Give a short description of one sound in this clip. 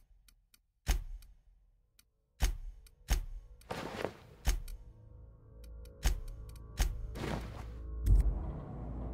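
Menu clicks sound sharply, one after another.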